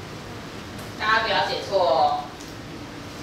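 A woman speaks loudly and with animation.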